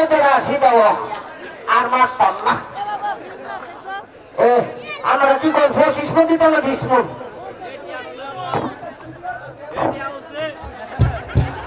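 A man shouts animatedly through a loudspeaker in a large echoing space.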